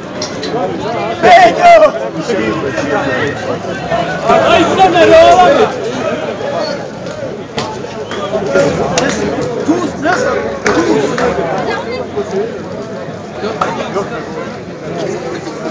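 A crowd of men shout and talk loudly nearby.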